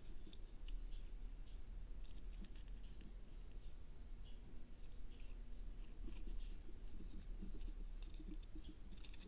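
Plastic parts click and creak as fingers handle them.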